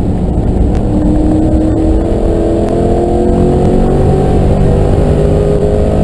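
Tyres rumble on the track.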